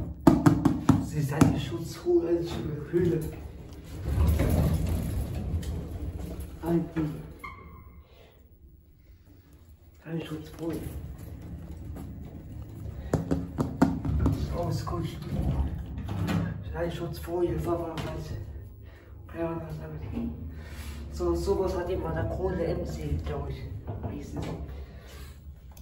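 A hand taps and pats on a metal panel.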